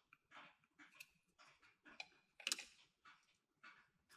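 A plastic toy is set down with a light knock.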